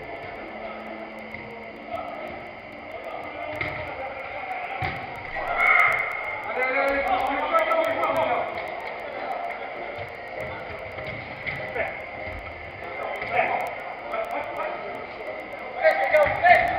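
Men shout and call out to each other across a large echoing indoor hall.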